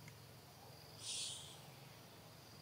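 A baby monkey gives a short high squeak.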